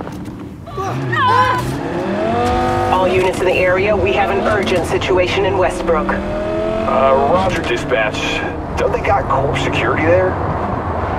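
A car engine revs and roars as the car speeds off.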